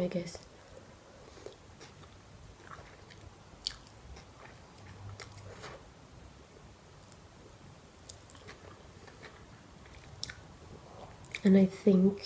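A young woman slurps and chews noodles close to a microphone.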